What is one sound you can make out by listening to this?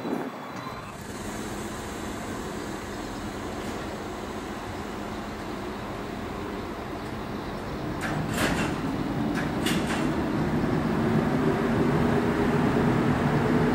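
An electric locomotive rolls slowly into a station, its motors humming louder as it nears.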